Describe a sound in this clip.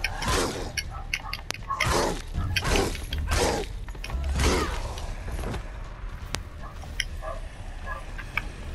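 Blades clash with sharp metallic hits.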